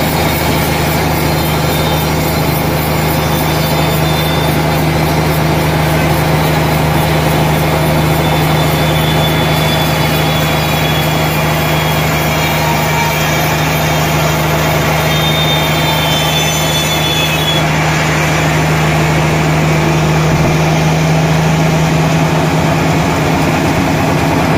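A large band saw cuts through a log with a loud, steady whine.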